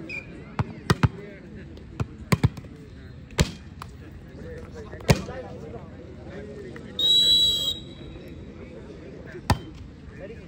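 A crowd of young men chatters and calls out outdoors.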